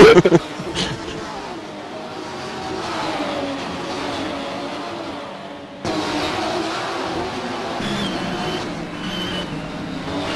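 Racing car engines roar and whine as they speed past.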